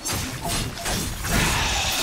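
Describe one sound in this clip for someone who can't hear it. Blades slash and strike in a fight.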